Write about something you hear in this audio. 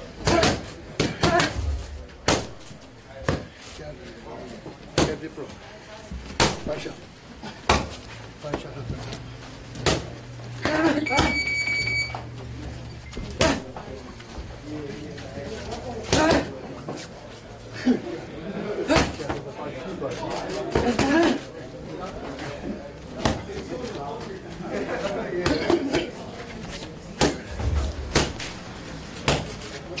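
Boxing gloves smack sharply against punch mitts in quick bursts.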